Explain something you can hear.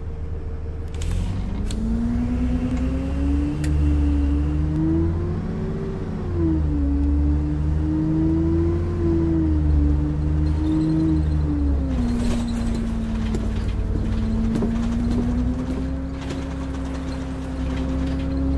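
Tyres rumble over the road.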